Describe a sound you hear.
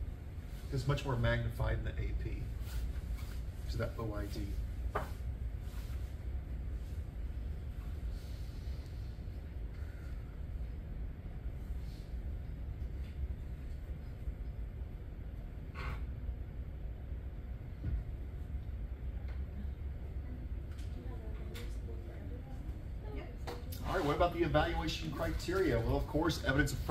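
A man speaks calmly to a room, heard from a short distance.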